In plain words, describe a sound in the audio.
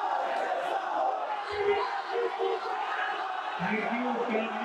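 A young man speaks into a microphone through loudspeakers in an echoing hall.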